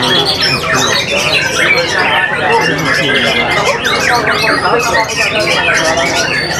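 A caged songbird sings loud, rapid, warbling phrases close by.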